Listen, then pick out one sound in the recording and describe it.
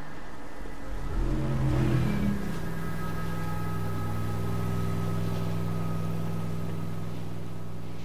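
A speedboat engine roars close by.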